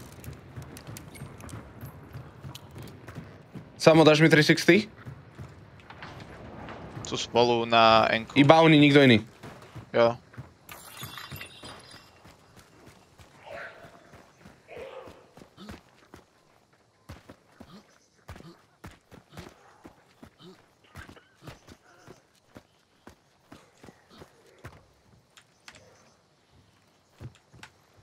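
Footsteps thud on wooden boards and gravel.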